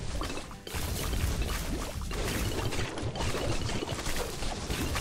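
Game sound effects pop and burst rapidly as balloons are popped.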